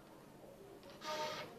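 A flute begins to play a note.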